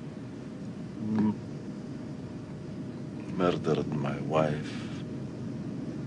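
A man speaks quietly and slowly, close by.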